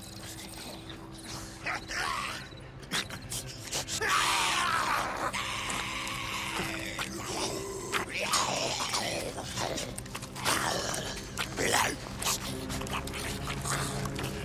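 Footsteps crunch on dry leaves and gravel.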